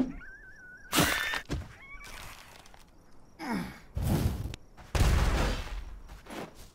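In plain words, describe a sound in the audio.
Magic spells burst with loud whooshing blasts.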